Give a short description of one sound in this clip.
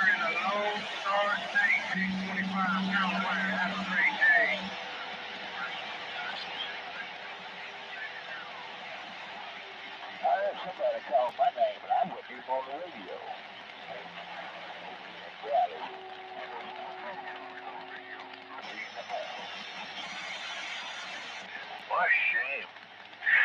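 Static hisses steadily from a radio loudspeaker.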